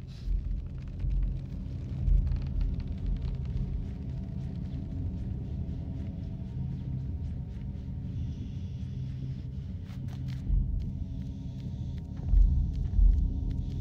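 Small footsteps patter softly across a hard floor.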